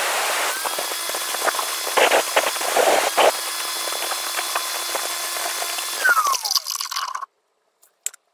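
An electric tile saw whines steadily, then winds down and stops.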